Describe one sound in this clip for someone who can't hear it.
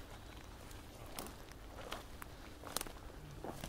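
A fire crackles and pops in burning wood.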